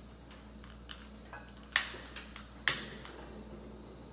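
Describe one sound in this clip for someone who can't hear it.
A gas burner clicks as it lights.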